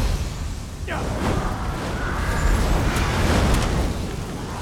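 A magic spell crackles and whooshes.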